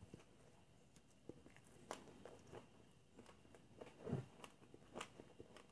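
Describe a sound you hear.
A man chews food noisily close by, with wet smacking sounds.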